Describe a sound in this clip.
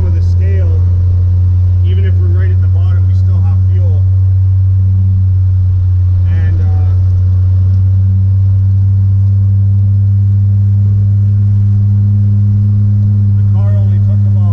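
A car engine drones steadily inside the cabin.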